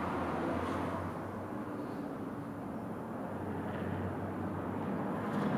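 Hands rub and tap against a metal panel.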